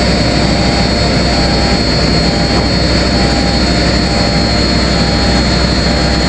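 A diesel wheel loader's engine rumbles.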